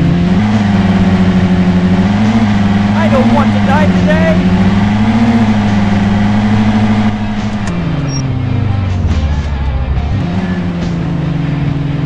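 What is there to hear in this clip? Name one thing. A car engine hums steadily, its pitch shifting as it drives.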